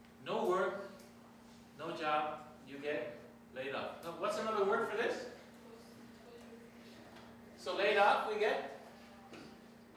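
A man lectures calmly, speaking in short bursts with pauses.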